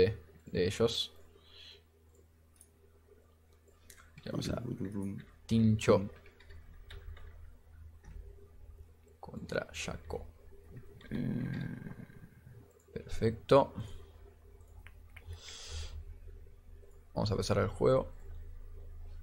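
A young man talks calmly into a microphone, in short bursts.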